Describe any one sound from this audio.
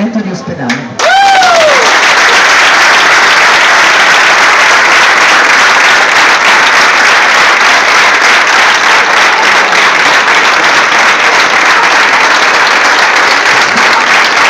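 A large crowd claps and cheers loudly outdoors.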